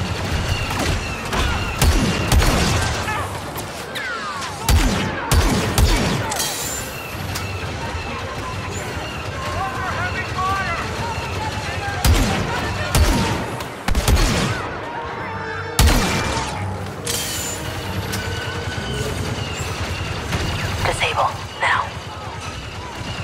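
Laser blasters fire in sharp bursts.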